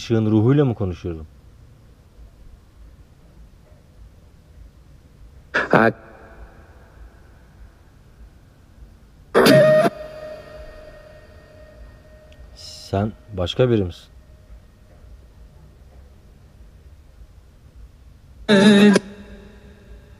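A man speaks quietly in short bursts, close by, with long silences between.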